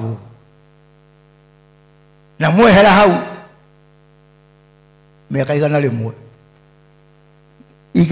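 A man speaks emphatically into a microphone over loudspeakers in a large echoing hall, with long pauses.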